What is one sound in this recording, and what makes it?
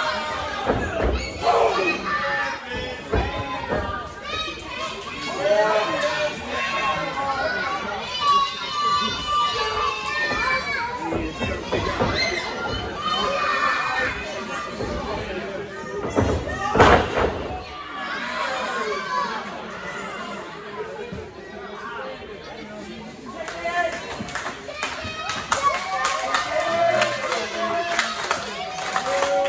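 A crowd of men, women and children chatters and calls out in a large echoing hall.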